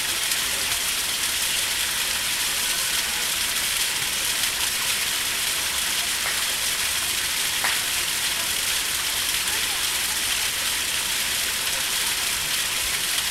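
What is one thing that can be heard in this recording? Water splashes steadily into a pond.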